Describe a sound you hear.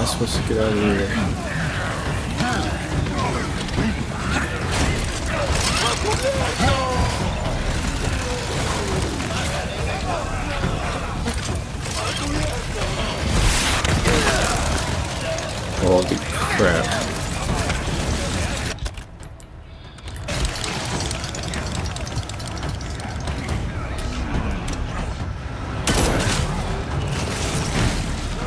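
A young man talks with animation, close to a microphone.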